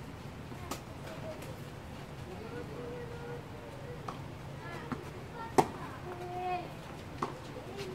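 Tennis balls are struck hard with rackets outdoors.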